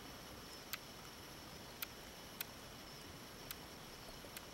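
Buttons click softly on a handheld radio.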